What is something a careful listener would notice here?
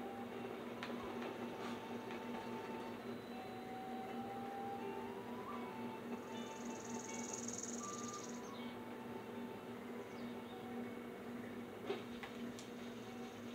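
Soft game music plays through a loudspeaker.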